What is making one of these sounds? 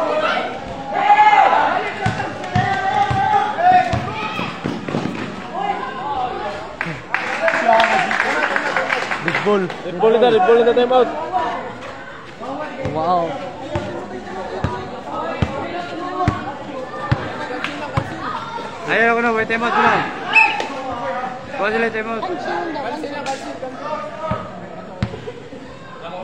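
Young men shout and call out to each other outdoors.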